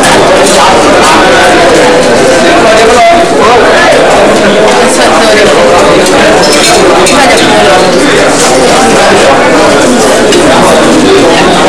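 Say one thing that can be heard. Serving spoons clink against metal dishes.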